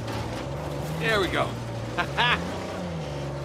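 A man speaks and laughs nearby.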